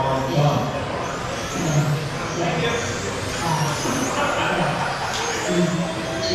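Small electric motors whine at high pitch as toy race cars speed past.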